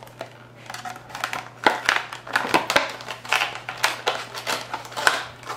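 A spoon scrapes and taps inside a plastic container.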